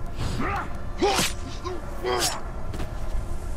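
A blade slashes and stabs with sharp metallic strikes.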